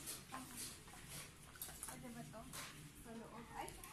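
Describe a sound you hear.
A woman talks nearby in a calm voice.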